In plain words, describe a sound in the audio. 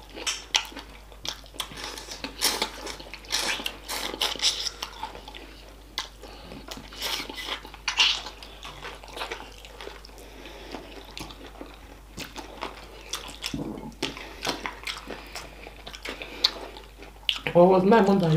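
A man chews food loudly with wet, crunchy smacking sounds close to the microphone.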